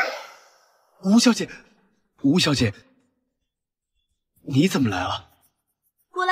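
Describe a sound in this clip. A young man speaks up close in a tense, surprised voice.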